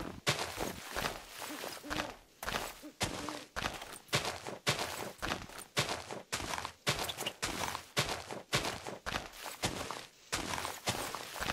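Digging crunches through dirt and snow in quick bursts.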